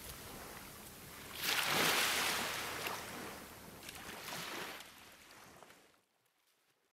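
Small waves wash gently against a shore.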